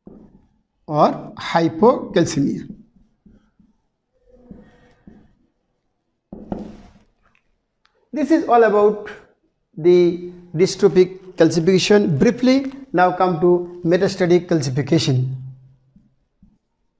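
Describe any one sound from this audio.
A middle-aged man lectures calmly, close to a microphone.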